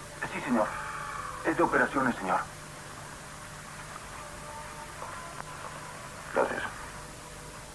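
Two men talk in short, tense exchanges.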